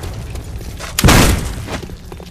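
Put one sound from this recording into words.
A shotgun fires with a loud, sharp blast.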